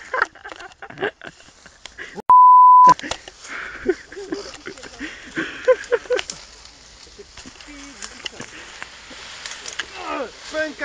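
Leaves and branches rustle and snap as a person pushes through dense bushes.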